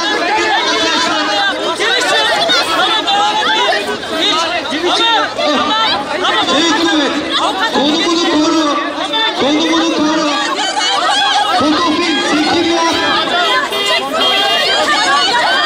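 A large crowd of men and women shout and chant loudly close by.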